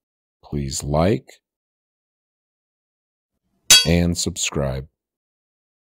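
A hammer strikes a metal anvil with a bright ringing clang.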